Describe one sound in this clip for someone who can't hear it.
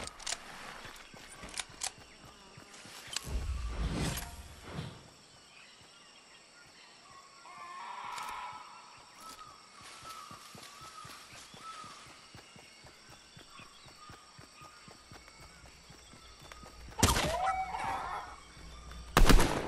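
Footsteps patter quickly on grass.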